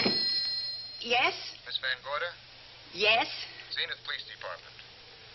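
A woman speaks into a telephone.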